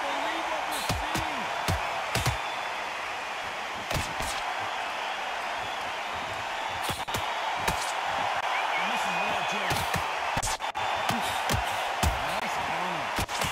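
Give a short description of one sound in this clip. Punches thud against a boxer's body and gloves.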